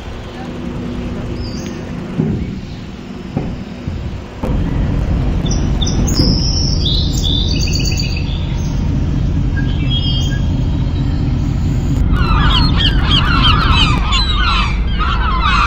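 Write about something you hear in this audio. Wind blows strongly outdoors.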